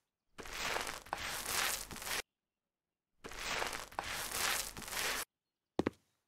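A paint roller rolls wetly across a wall in two long strokes.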